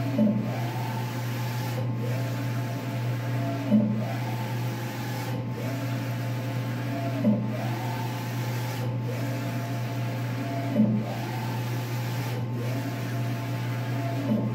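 A wide-format printer hums steadily.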